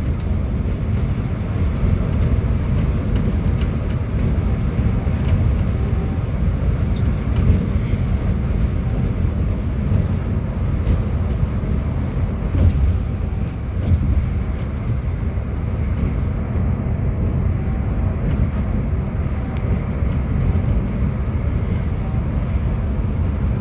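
A bus engine hums steadily as the bus drives along a highway.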